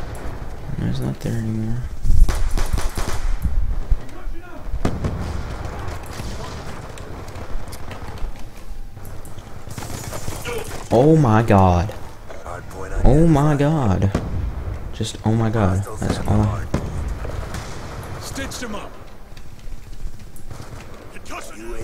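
Rapid gunfire rattles in short bursts.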